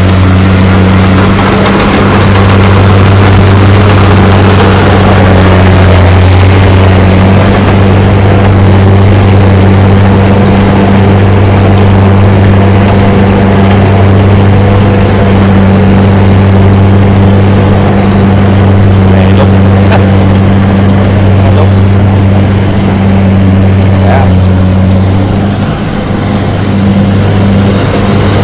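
A combine harvester's engine drones loudly and steadily close by.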